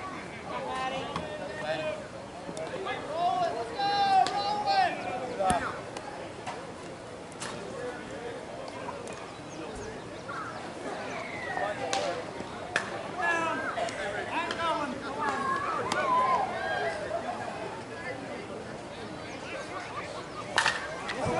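Men call out and chat across an open field outdoors.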